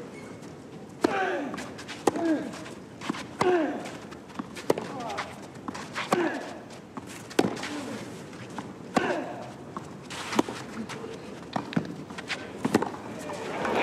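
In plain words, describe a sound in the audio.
Tennis players grunt loudly as they hit the ball.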